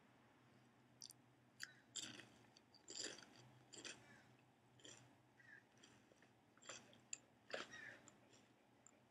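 A young woman crunches and chews potato chips close to a microphone.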